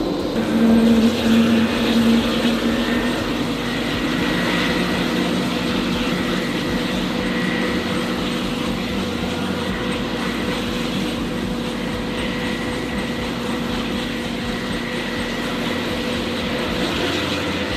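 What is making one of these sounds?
Helicopter rotor blades whoosh as they turn.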